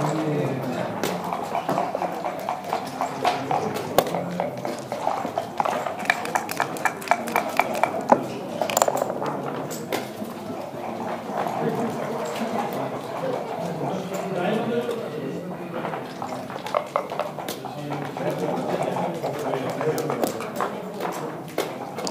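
Game pieces click and clack against a wooden board.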